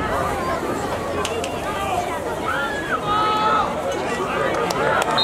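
Adults shout and cheer loudly outdoors.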